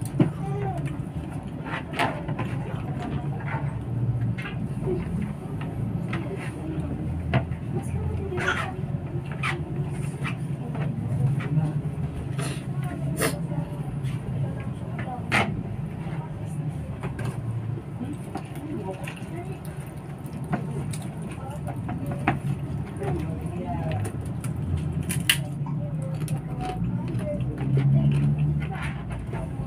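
Fingers click and scrape on a plate.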